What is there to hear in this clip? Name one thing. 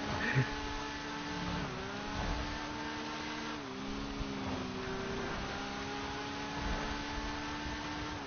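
A motorcycle engine hums steadily, shifting pitch as it changes gear.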